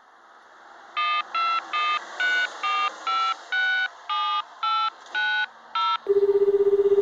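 Telephone keypad tones beep one after another as a number is dialled.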